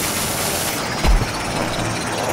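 A video game explosion booms.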